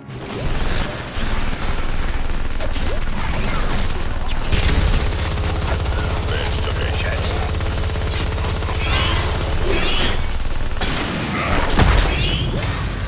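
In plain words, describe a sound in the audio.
Game weapons fire and blast in rapid bursts.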